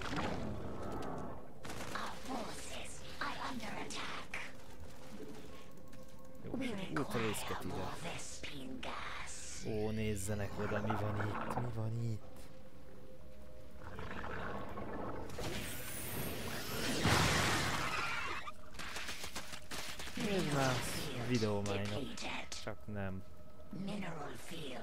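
Creatures screech and clash in a game battle.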